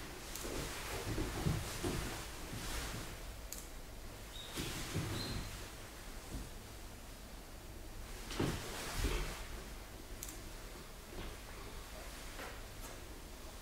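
Feet slide on a wooden floor.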